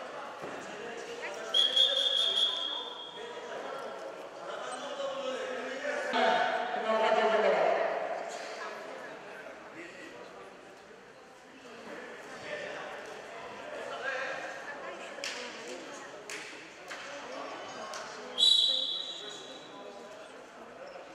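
A crowd of spectators chatters and calls out in an echoing hall.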